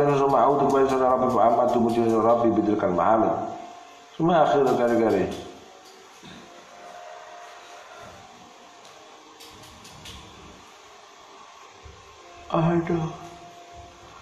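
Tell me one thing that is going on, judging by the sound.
A group of young men recite aloud together in a chanting voice.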